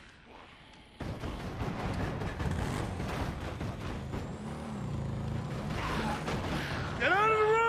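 A crowd of zombies groans and moans.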